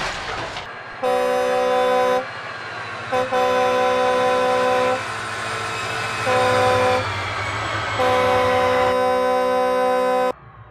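A train horn blasts in long repeated calls.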